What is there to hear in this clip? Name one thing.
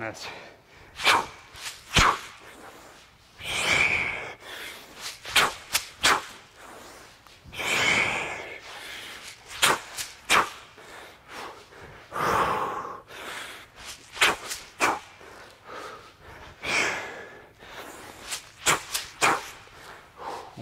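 Shoes scuff and tap on a hard floor.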